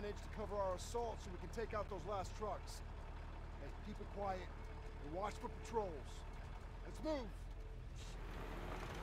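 A jeep engine idles with a low rumble.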